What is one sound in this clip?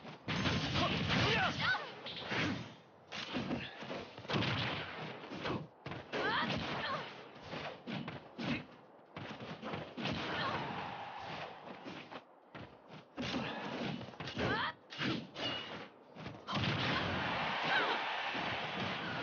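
Game sound effects of hits, slashes and blasts burst out rapidly.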